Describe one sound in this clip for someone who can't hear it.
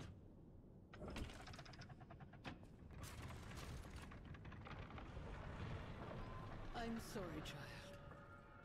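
A heavy wooden door creaks and swings open.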